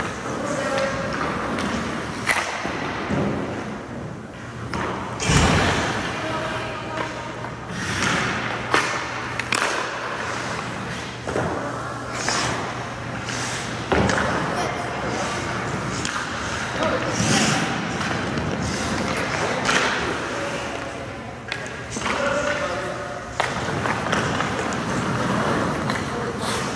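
Skate blades scrape and carve across the ice.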